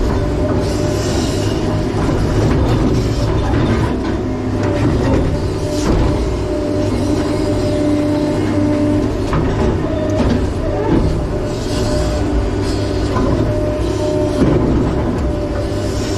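Rocks and dirt scrape and clatter in a digger bucket.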